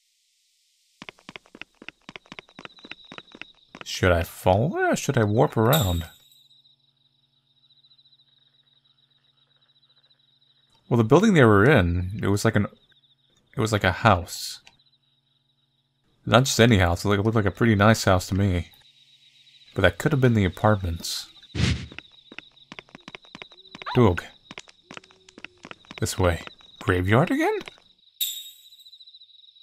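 Footsteps tap quickly and evenly on pavement.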